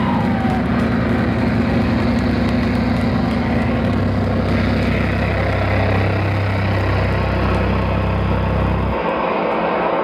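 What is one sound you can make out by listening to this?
A drummer pounds a drum kit loudly.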